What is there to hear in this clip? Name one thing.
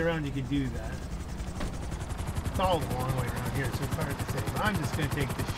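A helicopter engine whirs and its rotor thumps as it lifts off.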